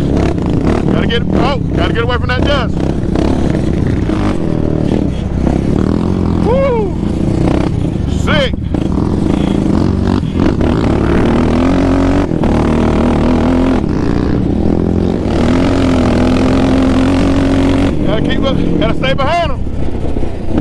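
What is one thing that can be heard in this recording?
A quad bike engine roars and revs up and down close by.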